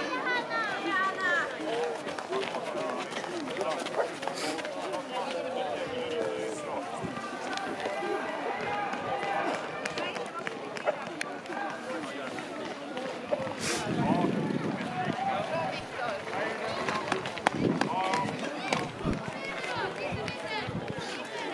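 Runners' footsteps crunch on packed snow.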